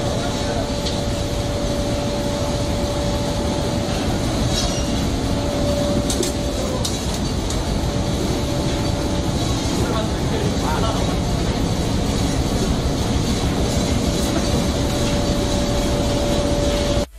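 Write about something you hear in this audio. Machinery hums and rumbles steadily, filling a noisy room.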